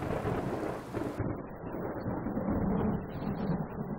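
Water sprays from a shower head.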